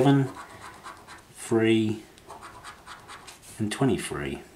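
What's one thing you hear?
A coin scratches at a scratchcard.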